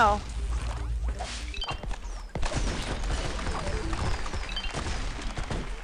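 Bright game music plays with quick bouncy notes.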